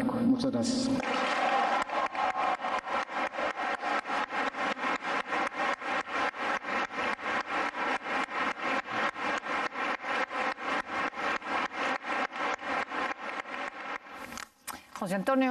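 A large crowd applauds steadily in an echoing hall.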